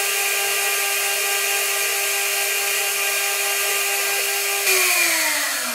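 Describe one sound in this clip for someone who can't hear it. A milling spindle whines steadily at high speed.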